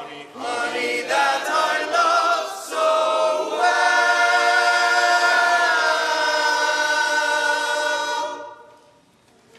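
A group of men sings in close harmony in a large echoing hall.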